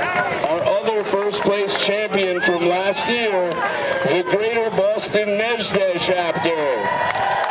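A crowd claps from the stands.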